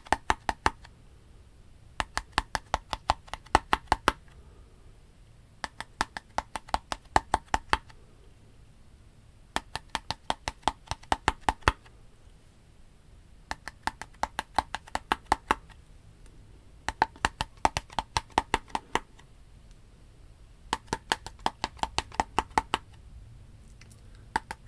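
Fingernails tap on a plastic bottle in quick rhythmic bursts, close to the microphone.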